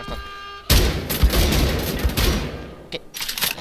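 An automatic gun fires rapid, loud bursts.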